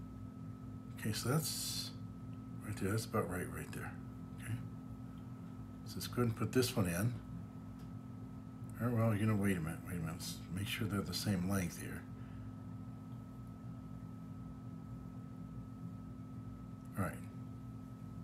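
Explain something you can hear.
An older man speaks calmly and close by, in short phrases with pauses.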